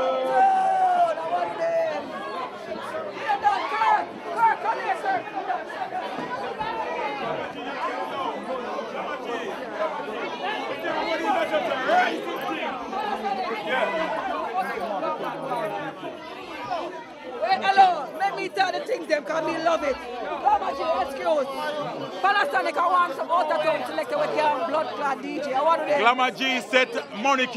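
A crowd of people chatters throughout in a busy room.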